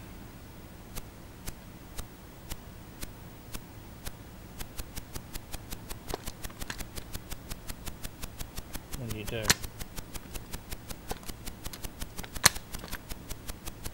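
A computer game gives out a fast run of rhythmic clicking beeps.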